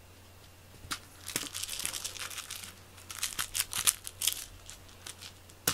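A cat scrapes and rustles inside a wicker basket.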